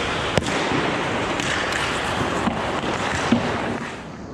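A hockey stick clacks sharply against a puck.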